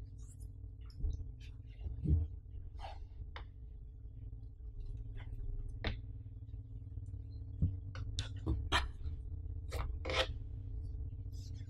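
A rubber mat thumps and rubs softly as it is unrolled and smoothed.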